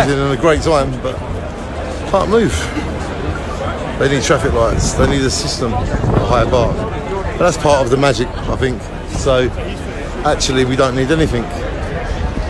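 A man talks with animation close to a phone microphone.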